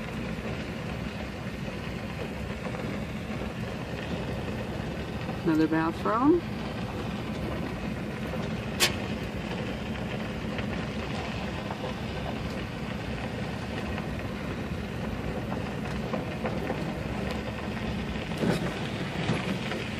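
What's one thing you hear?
Tyres crunch and rumble over a gravel road.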